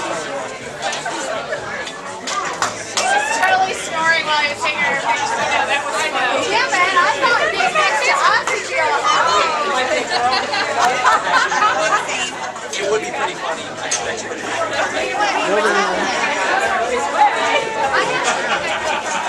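A crowd of men and women chatter and laugh excitedly nearby in a room with some echo.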